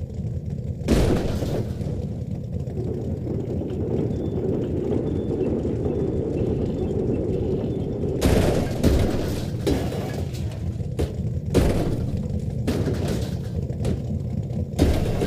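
A vehicle crashes and tumbles with loud metallic bangs.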